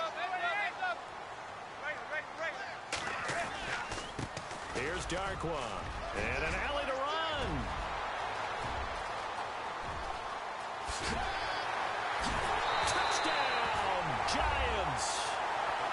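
A stadium crowd cheers and roars, growing louder toward the end.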